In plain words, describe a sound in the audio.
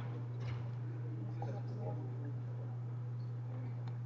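A man speaks faintly through a microphone.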